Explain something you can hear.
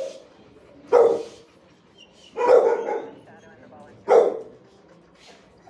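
A dog barks loudly, echoing off hard walls.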